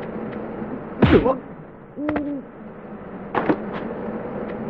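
A sword swishes and strikes in a short fight.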